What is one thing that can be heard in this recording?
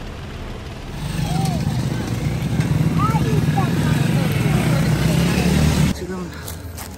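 A motorcycle taxi engine rumbles past.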